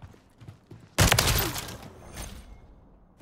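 Glass shatters and tinkles as bullets hit it.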